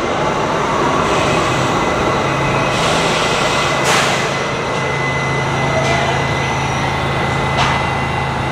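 Train brakes squeal as the subway train slows to a stop.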